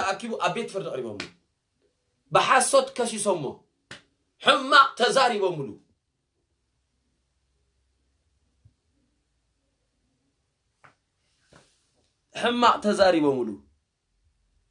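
A young man speaks with animation close to the microphone, in short bursts with pauses.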